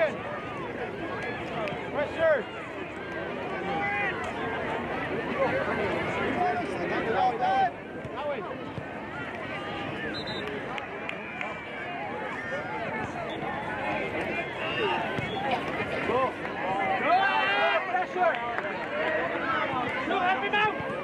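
A crowd of spectators chatters and calls out outdoors throughout.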